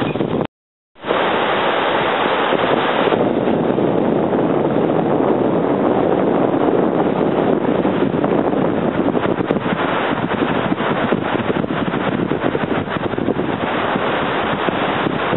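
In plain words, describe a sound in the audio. Waves break and wash onto a beach.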